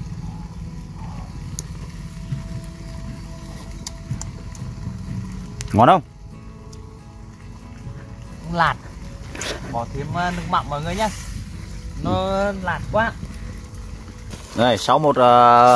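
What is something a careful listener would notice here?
A wood fire crackles under a pot.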